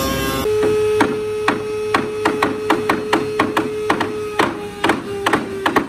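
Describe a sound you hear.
Wooden door parts knock together as they are fitted.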